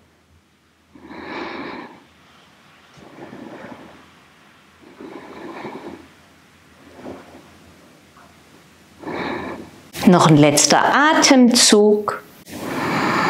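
A woman speaks calmly and slowly, close by, with pauses.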